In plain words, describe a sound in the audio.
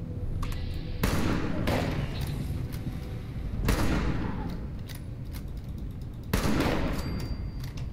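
Gunshots boom from a game, sharp and echoing.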